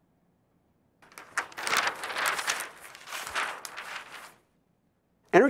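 Large paper sheets rustle and flap as they are flipped over.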